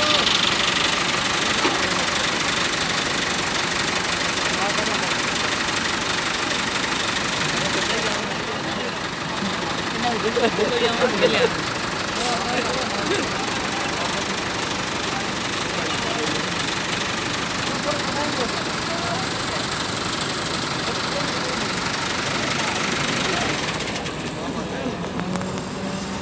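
A tractor engine runs with a loud diesel rumble.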